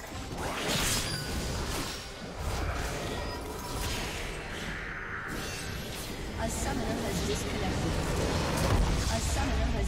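Magic spells crackle and whoosh in quick bursts.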